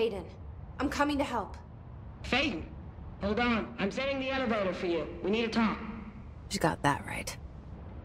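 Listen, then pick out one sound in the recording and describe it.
A young woman speaks quietly and close.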